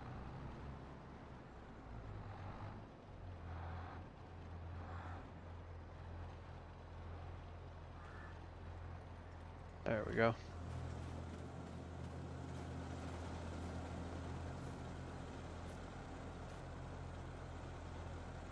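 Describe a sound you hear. A tractor engine idles with a low, steady rumble.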